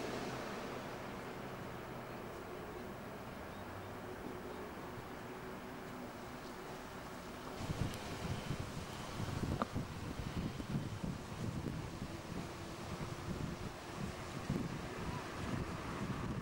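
Small waves lap gently on open water.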